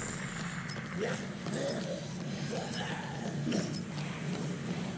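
A young man talks into a nearby microphone.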